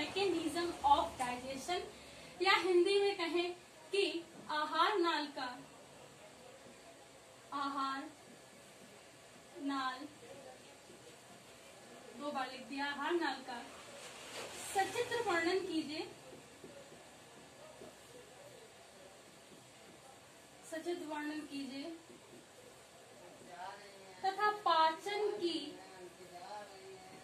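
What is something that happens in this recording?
A young woman speaks calmly and clearly nearby, pausing between phrases.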